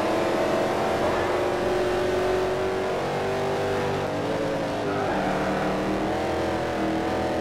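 A racing car engine roars steadily at high speed, its pitch shifting as it changes gear.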